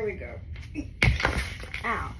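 A child thumps onto the floor.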